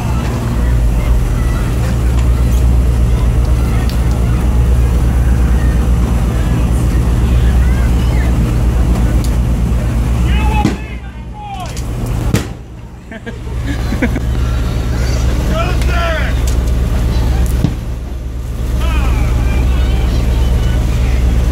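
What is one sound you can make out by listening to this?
Wind buffets the microphone outdoors on open water.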